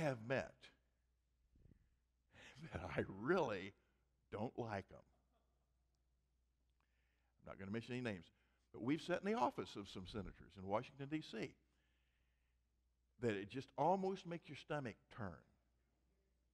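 An elderly man speaks with animation into a microphone, with pauses.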